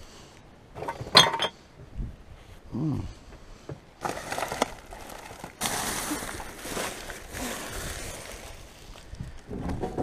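Plastic bags rustle and crinkle as a gloved hand rummages through rubbish.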